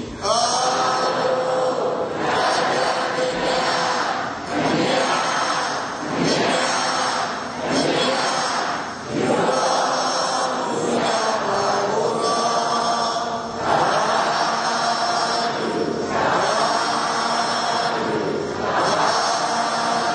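An elderly man speaks calmly and steadily into a microphone.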